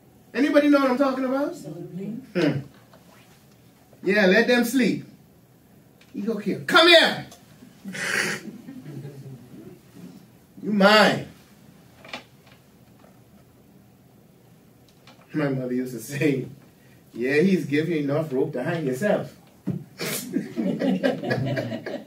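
An elderly man speaks calmly in a room with light echo, with pauses between phrases.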